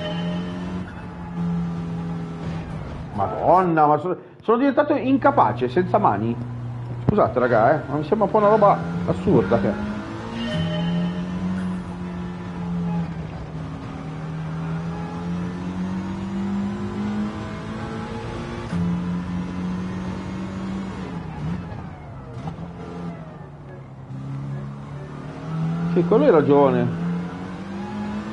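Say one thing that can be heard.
A racing car engine drones steadily, its pitch rising and falling with gear changes.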